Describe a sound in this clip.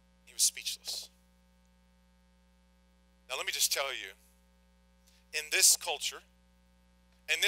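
A man speaks calmly and deliberately into a microphone.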